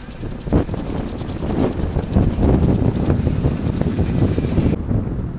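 Wind rumbles and buffets loudly outdoors.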